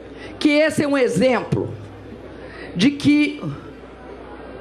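A woman speaks firmly into a microphone, heard through loudspeakers outdoors.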